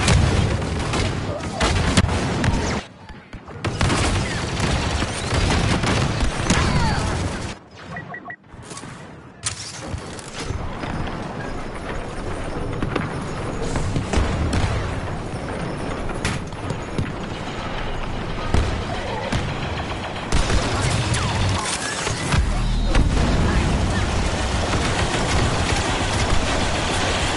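Blaster fire crackles and zaps rapidly in a battle.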